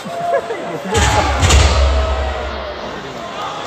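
A heavy thud booms as a wrestler hits the ring mat.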